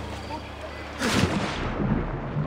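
Water splashes loudly as a body plunges into it.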